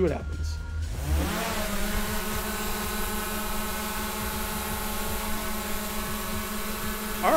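A drone's propellers spin up and whine steadily as it hovers close by.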